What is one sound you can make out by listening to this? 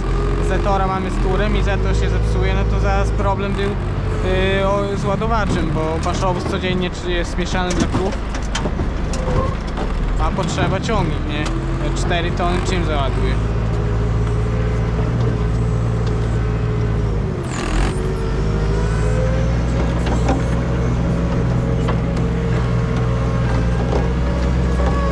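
A heavy machine engine drones steadily close by.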